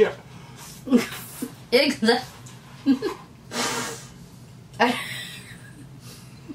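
A man slurps a drink loudly.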